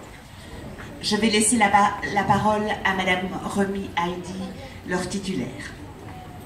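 A woman speaks into a microphone over loudspeakers in a large hall.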